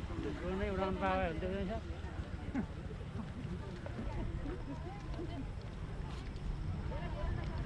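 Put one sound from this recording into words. A crowd of people talks and chants nearby outdoors.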